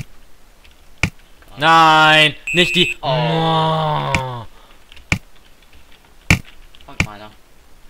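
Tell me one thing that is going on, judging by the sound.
A ball is struck repeatedly with short, sharp thumps.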